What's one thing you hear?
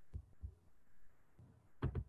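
A man speaks quietly over an online call.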